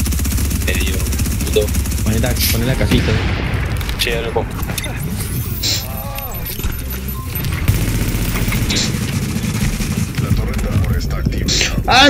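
Gunshots fire in bursts.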